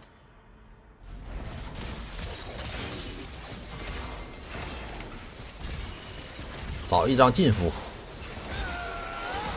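Game battle effects clash and burst.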